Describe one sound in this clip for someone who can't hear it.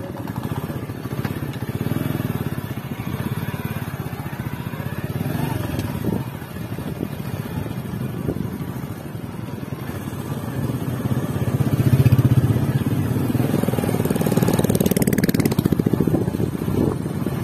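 A motorcycle engine rumbles close by.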